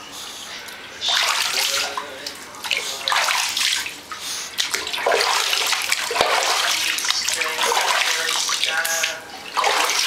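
A hand rubs and scrubs a wet dog's fur.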